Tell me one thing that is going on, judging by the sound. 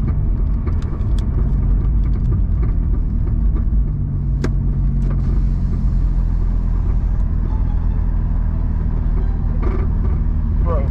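A car rumbles steadily.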